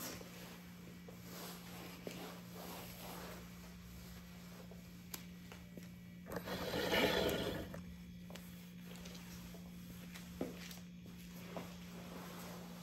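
A mop swishes and scrubs across a hard floor.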